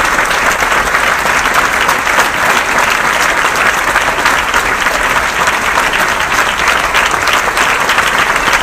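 A large audience applauds loudly and steadily in a big hall.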